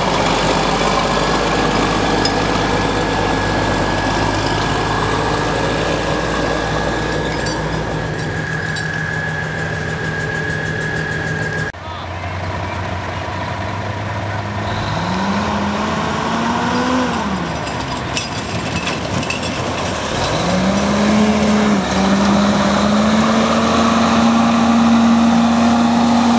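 A heavy truck engine rumbles and revs loudly.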